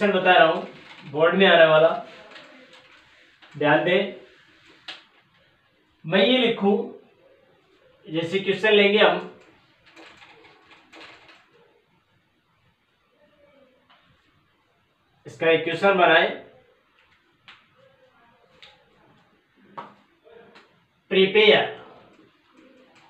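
A man speaks calmly in short bursts nearby, in a slightly echoing room.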